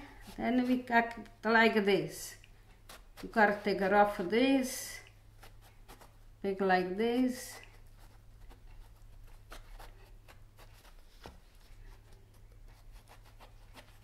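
A knife softly scores soft vegetable flesh.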